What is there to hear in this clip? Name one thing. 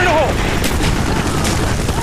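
An explosion bursts close by.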